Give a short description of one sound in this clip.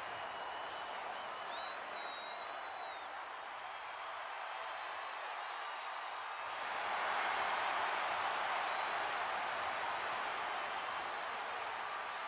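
A large crowd cheers steadily in a huge arena, then swells into a louder roar.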